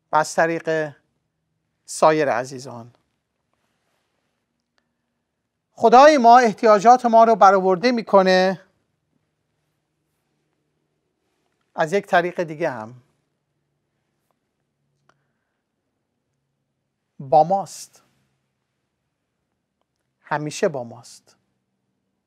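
A middle-aged man speaks calmly into a microphone, in short phrases with long pauses.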